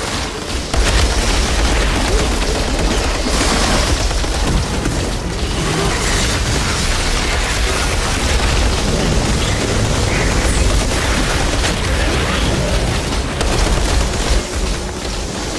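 Gunfire and energy blasts crackle loudly and continuously.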